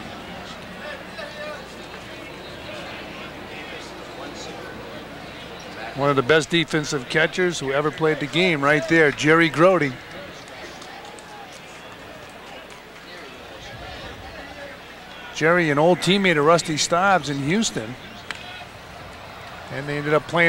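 A large crowd murmurs softly in an open stadium.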